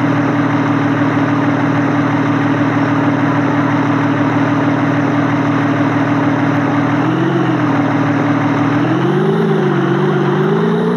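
A car engine hums steadily and revs higher now and then.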